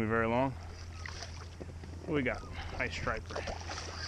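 A fish splashes at the water's surface close by.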